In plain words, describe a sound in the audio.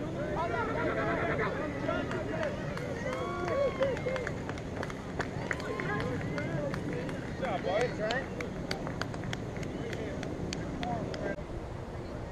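A crowd of spectators cheers and shouts outdoors, some distance away.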